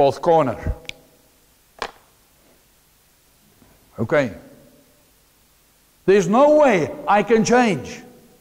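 A man speaks with animation, pausing between phrases.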